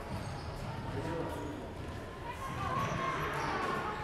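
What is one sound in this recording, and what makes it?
A table tennis ball taps on a table and paddles.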